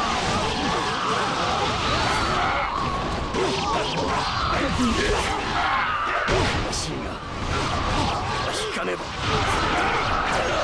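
Swords slash and clash rapidly in a busy battle.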